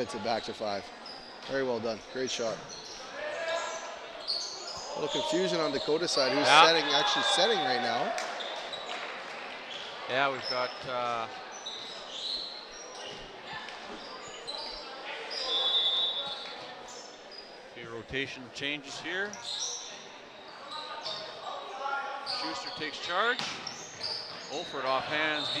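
Young men shout and call out to each other in an echoing gym.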